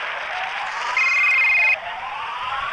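A phone rings briefly.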